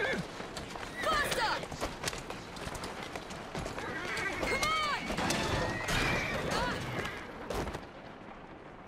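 Horse hooves clop on a stone street.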